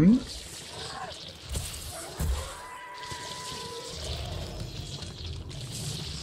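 A creature tears wetly at flesh with crunching bites.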